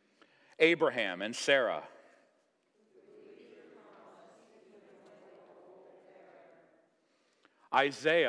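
A man reads aloud in a clear, measured voice.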